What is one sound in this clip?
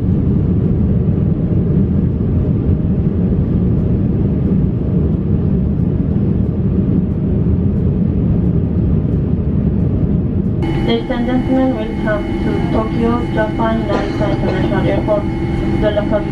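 A jet engine roars steadily, heard from inside an aircraft cabin.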